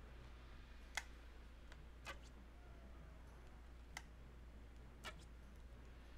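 A bowstring snaps sharply as arrows are loosed.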